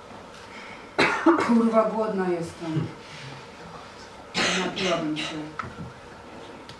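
A man speaks loudly and with expression in a room that echoes a little.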